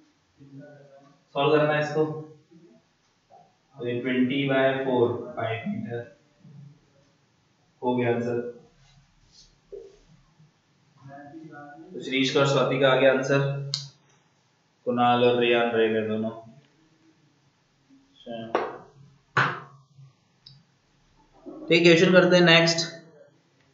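A young man lectures through a microphone, pausing between phrases.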